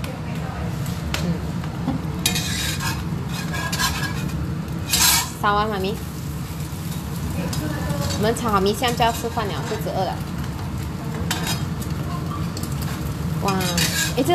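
Egg sizzles softly in a hot wok.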